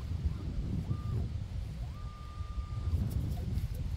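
A metal detector beeps with short steady tones.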